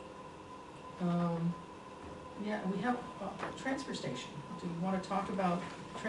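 An older woman speaks calmly at a distance in a quiet room.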